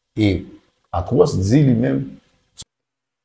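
A man speaks with animation into a microphone, close up.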